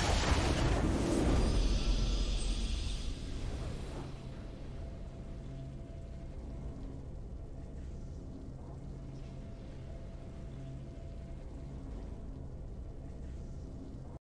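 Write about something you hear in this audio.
A triumphant game fanfare swells loudly, then fades into soft low music.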